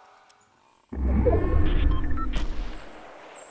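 A game warning sounds loudly and low.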